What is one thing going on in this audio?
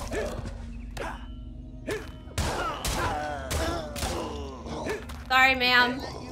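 A sword slashes and strikes with sharp hits.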